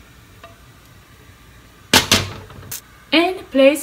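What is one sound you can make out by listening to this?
A spoon scrapes and taps against a metal pan.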